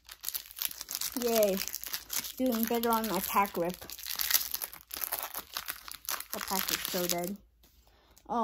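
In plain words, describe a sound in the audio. A foil wrapper crinkles and rustles.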